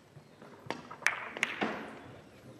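A cue ball strikes a tight rack of billiard balls with a sharp clatter.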